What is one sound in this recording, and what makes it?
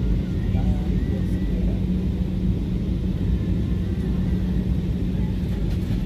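A jet engine roars steadily in a loud, low drone inside an airliner cabin.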